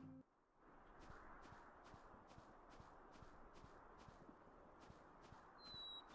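Soft footsteps patter steadily on grass.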